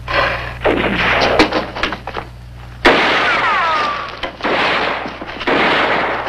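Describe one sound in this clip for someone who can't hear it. Rifle shots crack loudly outdoors.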